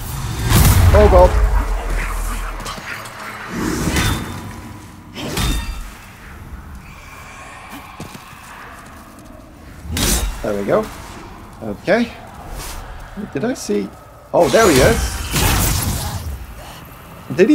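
Heavy sword blows strike and clash.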